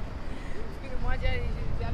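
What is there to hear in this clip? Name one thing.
A young woman talks briefly nearby.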